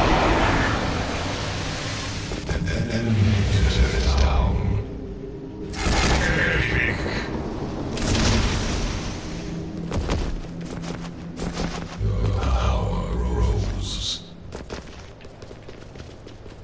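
Game sound effects whoosh and clash during a fight.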